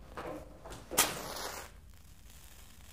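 A match strikes and flares up.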